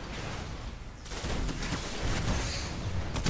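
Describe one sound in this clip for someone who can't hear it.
Weapons fire in loud, crackling bursts.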